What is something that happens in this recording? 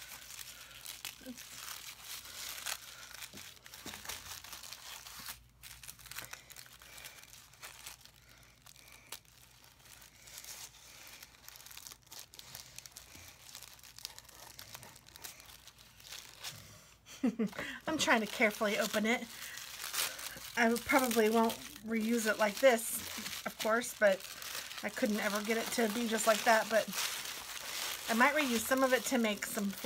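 Tissue paper crinkles and rustles as it is handled.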